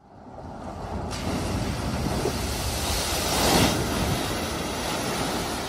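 A car drives fast through deep floodwater with a loud rushing splash.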